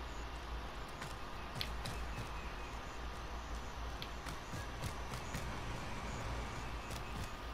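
Footsteps tread on a hard roof.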